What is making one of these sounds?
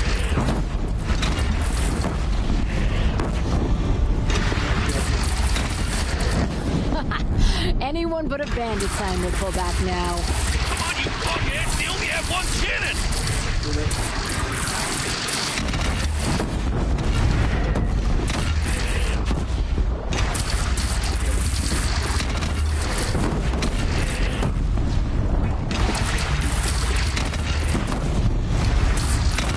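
Laser blasts and explosions crackle and boom loudly.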